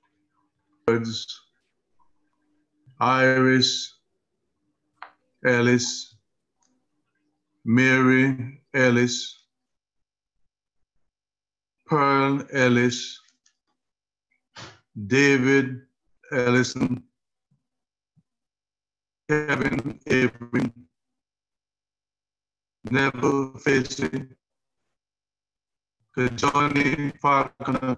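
A man reads out slowly and calmly over an online call, pausing between phrases.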